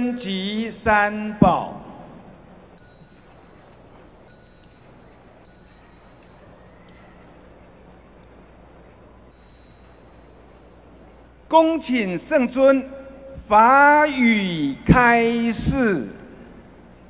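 A group of monks chants together through loudspeakers in a large echoing hall.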